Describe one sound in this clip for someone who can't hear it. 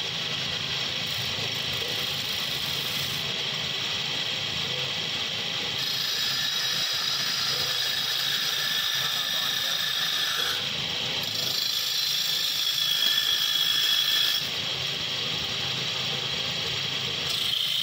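A chisel scrapes against spinning wood with a rough hiss.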